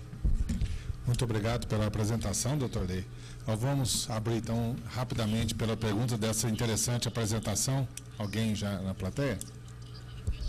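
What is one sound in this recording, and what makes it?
A middle-aged man speaks calmly into a microphone, heard through loudspeakers in a large room.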